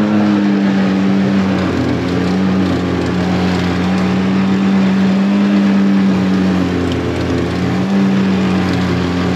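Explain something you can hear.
Water splashes and churns beside a moving boat.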